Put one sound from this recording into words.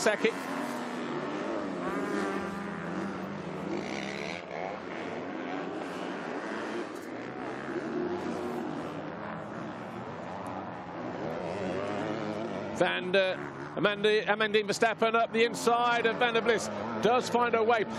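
Motorcycle engines roar and whine as dirt bikes race by.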